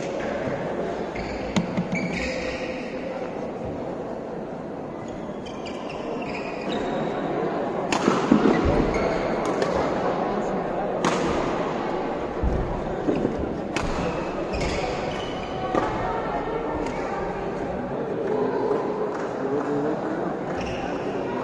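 A crowd of spectators murmurs and chatters.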